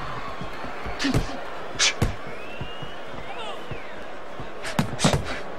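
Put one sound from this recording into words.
Boxing gloves thud against a body in sharp blows.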